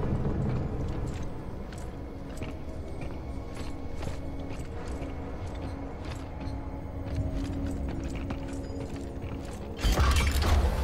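Heavy boots clank on a metal grate floor.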